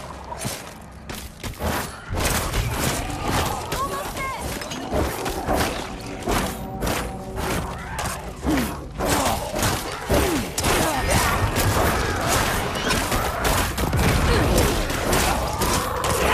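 Weapons clash and hit enemies in quick, repeated blows.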